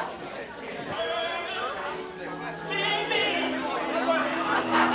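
A man speaks into a microphone over loudspeakers in a large room.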